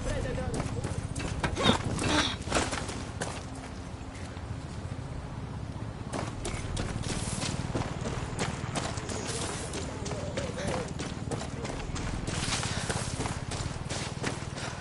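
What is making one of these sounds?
Footsteps crunch steadily on dirt and grass.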